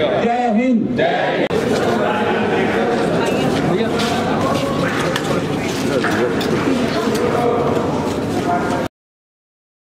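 A crowd murmurs and chatters close by.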